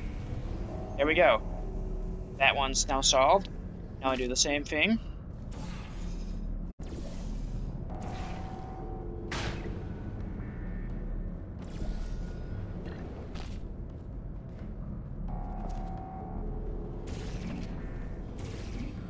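A portal gun fires with sharp electronic zaps.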